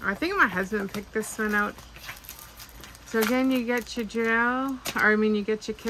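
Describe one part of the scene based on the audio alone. Thin paper rustles as it is unfolded.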